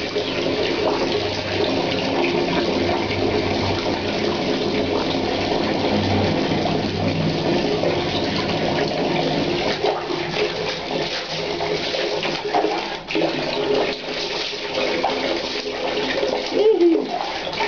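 Water runs from a tap and splashes onto a tiled floor in a small echoing room.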